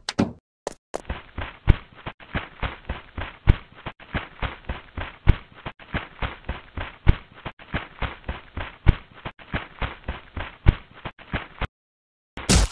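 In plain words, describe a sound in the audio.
Footsteps tread rapidly on sand.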